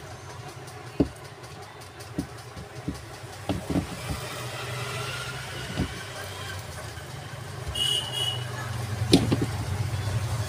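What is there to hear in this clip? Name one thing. Metal parts clink and knock together as they are handled.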